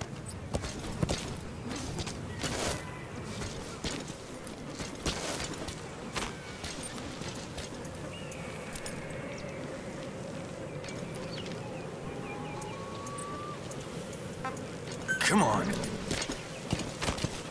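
Footsteps crunch on dry grass and gravel.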